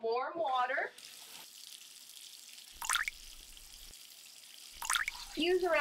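Water pours and splashes into a bowl.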